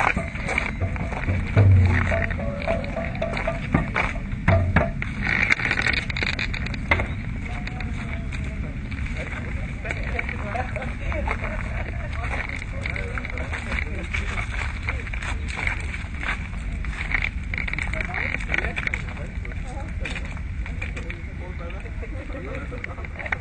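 A small crowd of men and women talks and murmurs outdoors.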